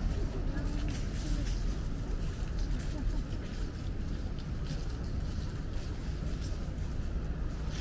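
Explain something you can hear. Footsteps crunch and shuffle on a paved path outdoors.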